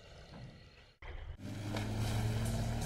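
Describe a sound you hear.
Water splashes against a boat.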